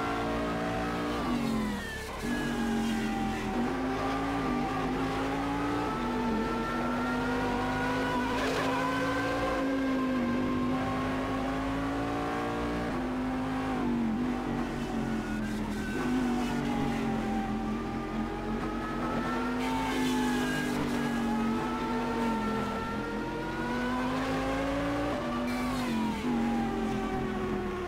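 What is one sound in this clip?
A racing car engine screams at high revs.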